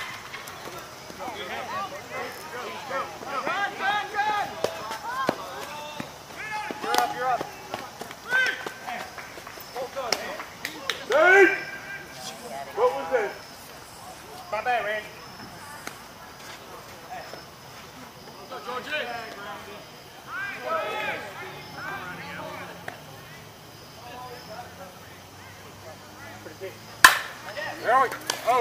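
Men call out and shout across an open field outdoors.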